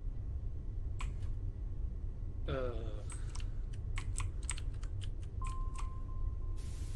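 Soft game clicks tap quickly.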